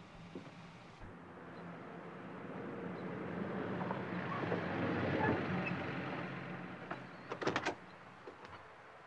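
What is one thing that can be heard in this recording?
A van engine hums as the van drives past, growing louder and then fading.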